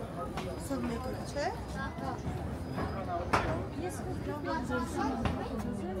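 A crowd of men and women murmur and chat close by outdoors.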